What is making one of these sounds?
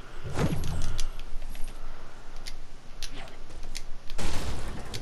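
Footsteps patter across a hard roof.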